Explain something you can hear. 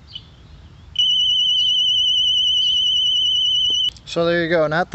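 An electronic device gives a long, steady high beep.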